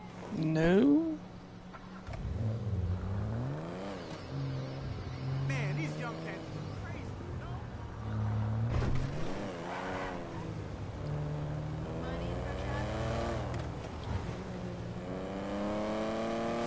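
A car engine revs up and down as the car drives along.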